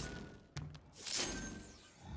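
An energy weapon zaps with a sharp burst.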